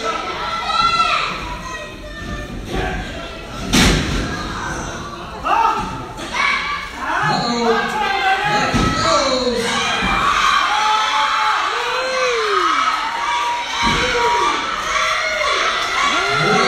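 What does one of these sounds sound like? A crowd of adults shouts and cheers in a large echoing hall.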